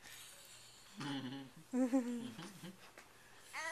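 A baby babbles softly close by.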